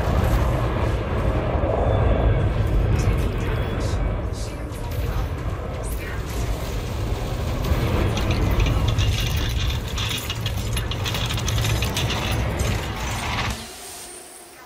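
A spaceship engine rumbles deeply.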